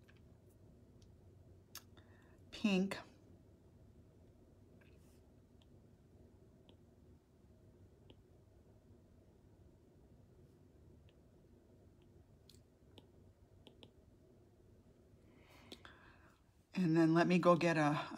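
A stylus taps lightly on a tablet.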